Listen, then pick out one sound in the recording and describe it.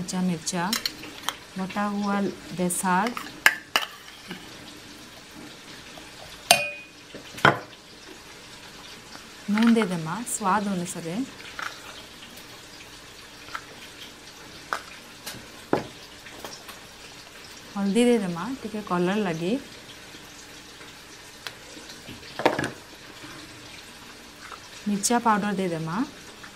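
A metal spoon clinks against a steel bowl.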